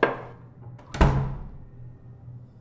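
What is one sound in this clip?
A heavy door slams shut with a loud bang and echo.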